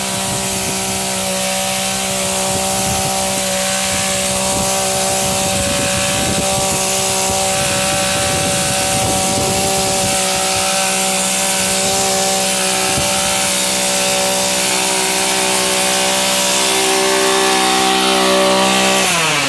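A hedge trimmer engine drones steadily close by.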